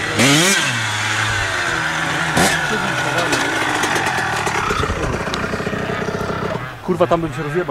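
A dirt bike engine roars close by as the bike rides past.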